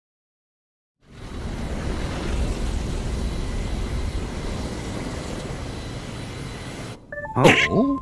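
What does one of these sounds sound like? A spaceship's engines roar steadily as it flies.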